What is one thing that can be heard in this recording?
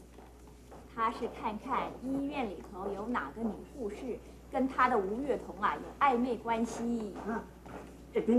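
A young woman explains with animation.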